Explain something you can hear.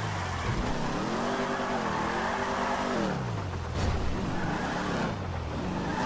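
Car tyres screech while the car skids around a corner.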